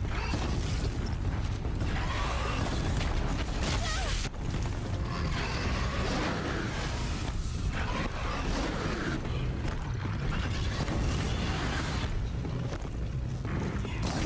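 Fiery explosions burst and crackle.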